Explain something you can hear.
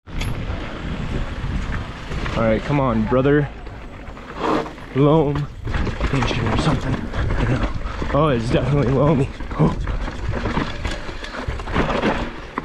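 Bicycle tyres crunch over gravel and dirt.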